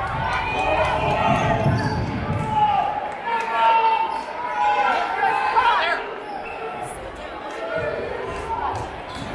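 A crowd cheers and chatters in a large echoing gym.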